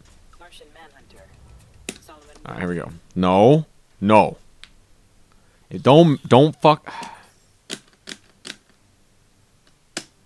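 Short electronic menu clicks sound as a selection changes.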